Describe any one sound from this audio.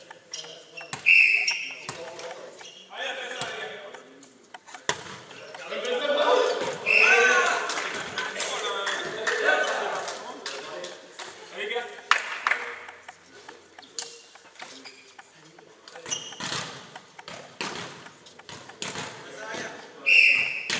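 A volleyball is struck with sharp slaps that echo in a large hall.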